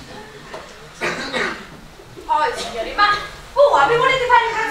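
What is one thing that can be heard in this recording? A woman speaks loudly and with animation from a short distance.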